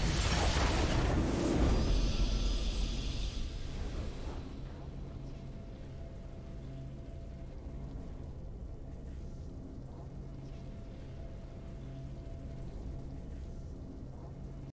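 A triumphant musical fanfare swells and lingers.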